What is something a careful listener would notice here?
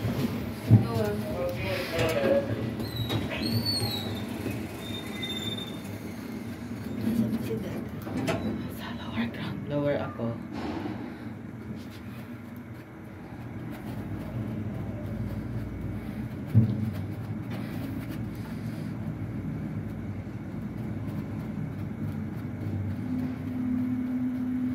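An elevator car hums steadily as it travels between floors.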